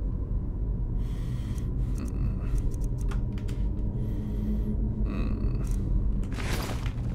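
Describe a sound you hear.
Soft clicks sound as items are picked from a menu.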